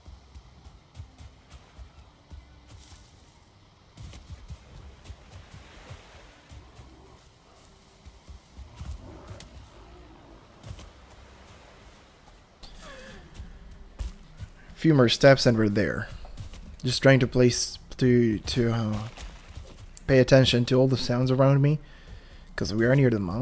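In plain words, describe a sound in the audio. Footsteps tread softly over grass and soft ground.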